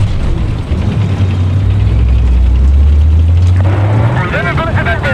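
A tank engine rumbles low and heavy.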